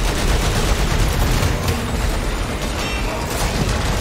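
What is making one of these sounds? An energy weapon fires with crackling bursts.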